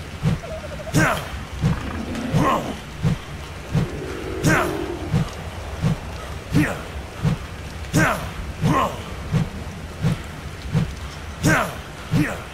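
Sea waves wash softly onto a sandy shore.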